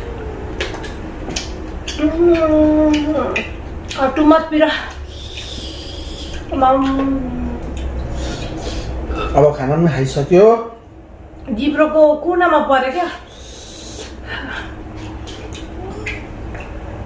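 Hands squish and mix food on plates.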